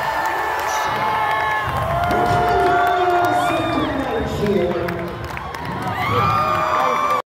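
A loud rock band plays live in a large hall.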